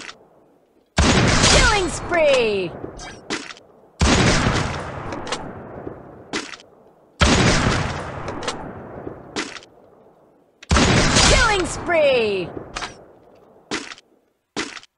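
A sniper rifle fires loud, booming shots that echo away.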